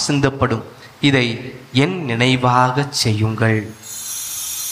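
A man chants in a raised voice through a microphone, echoing in a large hall.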